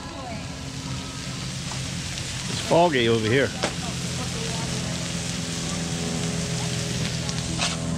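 Sausages, burgers and onions sizzle on a hot flat-top griddle.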